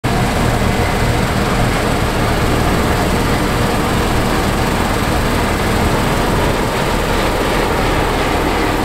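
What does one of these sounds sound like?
A combine harvester's header rattles as it cuts through dry wheat.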